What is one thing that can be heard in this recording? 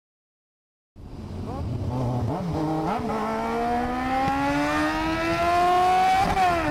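A motorcycle engine roars and revs up as the bike accelerates.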